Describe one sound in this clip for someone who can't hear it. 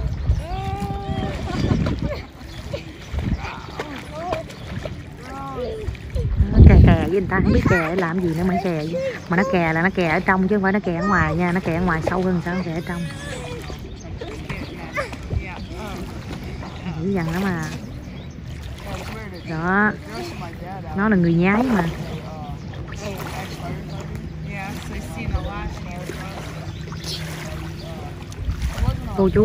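Water splashes as young girls paddle and kick.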